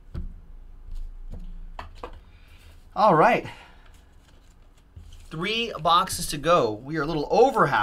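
Trading cards shuffle and click against each other.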